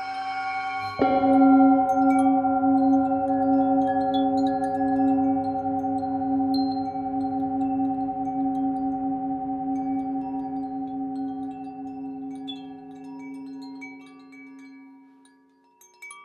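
A singing bowl is struck and rings out, slowly fading.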